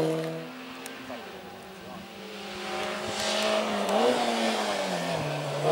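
A second racing car engine revs and grows louder as it approaches.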